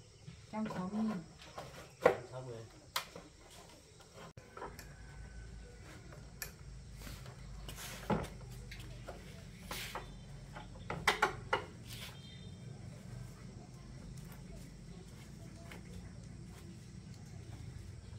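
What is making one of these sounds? Metal tools clink and knock against a motorbike.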